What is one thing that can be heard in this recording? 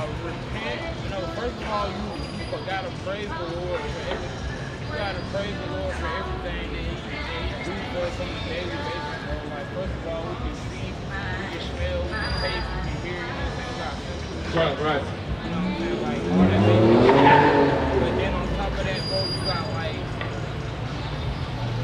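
A young man raps rhythmically, close by.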